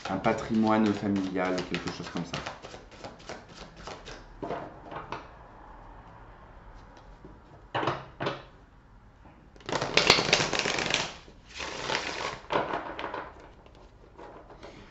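Playing cards are shuffled by hand with quick flicking and slapping.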